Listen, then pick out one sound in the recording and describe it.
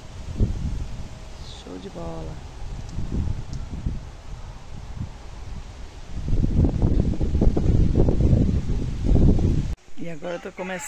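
Wind buffets the microphone outdoors in low rumbling gusts.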